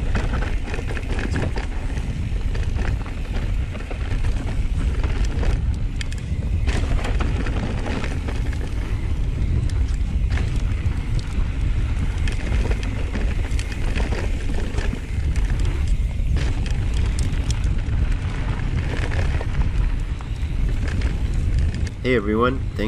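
Bike tyres crunch and rattle over a dirt trail.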